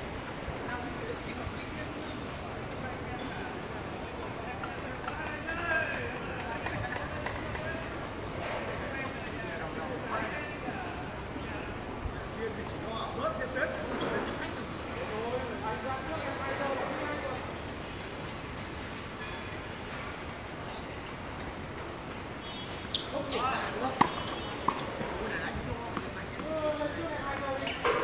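Men talk at a distance.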